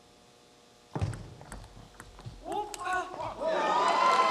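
A table tennis ball clicks sharply back and forth off paddles and the table.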